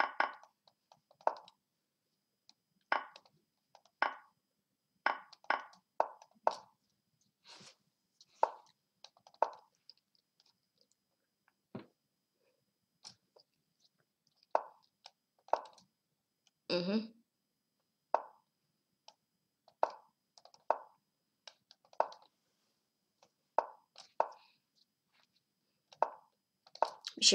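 Short electronic clicks sound as chess pieces move.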